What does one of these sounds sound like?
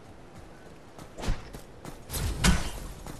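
Energy blasts fire and burst with loud crackling zaps.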